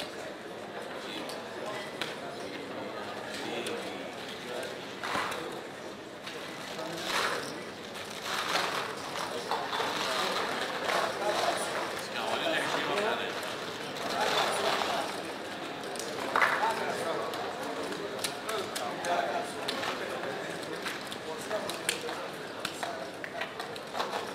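Casino chips clack and clatter as they are gathered and stacked.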